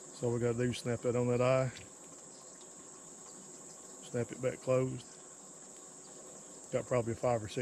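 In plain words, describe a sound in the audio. A man talks calmly close by, outdoors.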